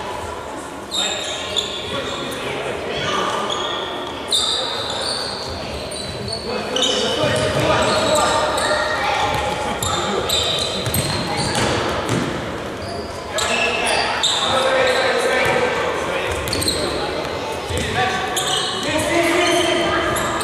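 A ball thumps as it is kicked.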